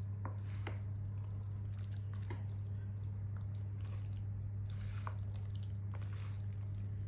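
A fork clicks against a plastic bowl.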